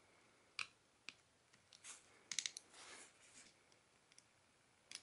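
Fingers tap and click against a phone's plastic back.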